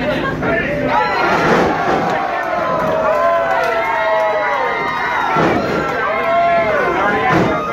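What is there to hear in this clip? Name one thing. Bodies slam down hard onto a wrestling ring mat.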